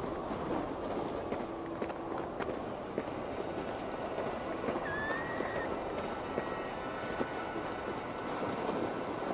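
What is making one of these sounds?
Wind howls steadily.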